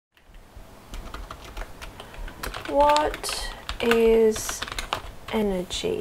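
Computer keys clatter under quick typing.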